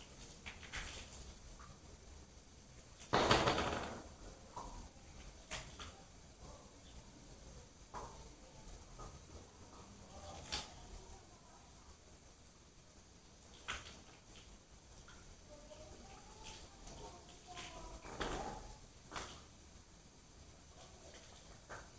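Water splashes from a hose onto a tiled floor.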